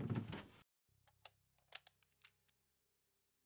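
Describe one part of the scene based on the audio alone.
Wire hangers click along a closet rail.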